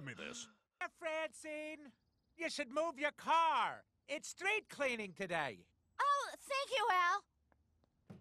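A woman talks brightly and cheerfully.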